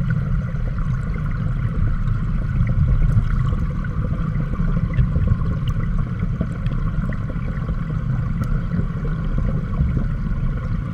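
Stream water rushes past, heard underwater as a deep, muffled rumble.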